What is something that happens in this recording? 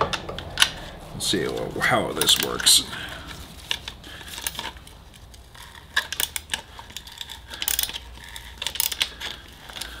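Metal parts click and clink sharply.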